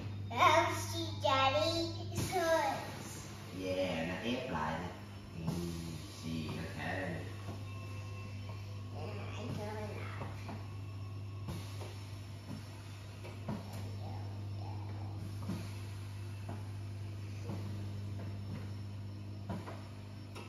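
A massage chair hums steadily.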